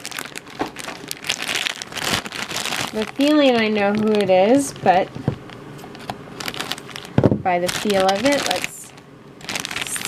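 A plastic foil bag crinkles and rustles close by.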